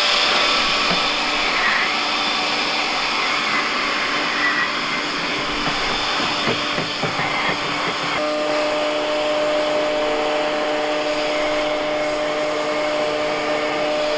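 A brush scrapes pine needles across a metal roof.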